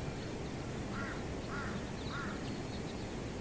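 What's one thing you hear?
A hen clucks softly nearby.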